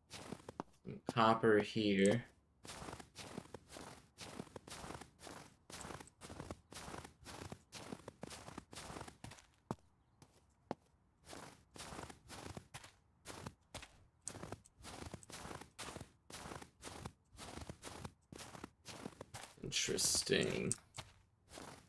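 A young man speaks briefly into a microphone.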